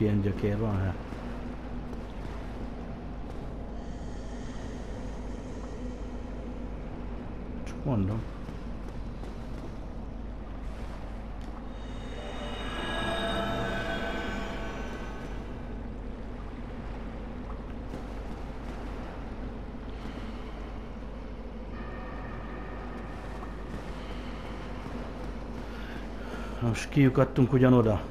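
Armoured footsteps clatter on stone, echoing in a narrow stone passage.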